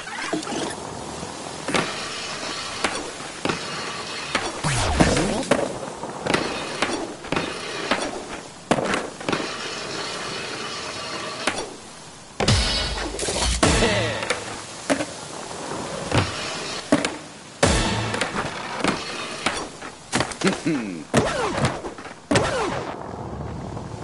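A skateboard clacks sharply as it lands tricks.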